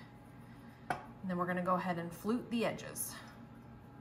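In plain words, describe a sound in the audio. A knife trims soft dough.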